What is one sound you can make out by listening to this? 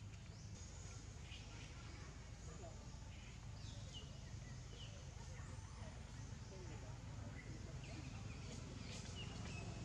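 A baby monkey squeaks in short, high calls.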